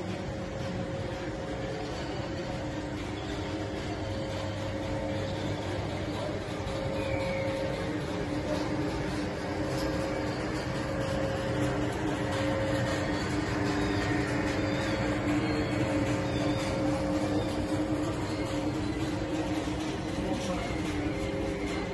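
A TGV high-speed electric train rolls slowly past with a steady electric hum.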